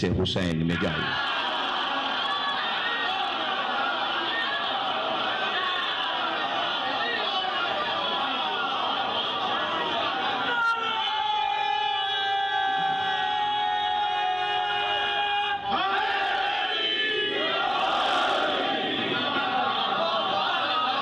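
A middle-aged man speaks with feeling into a microphone, heard through loudspeakers in an echoing hall.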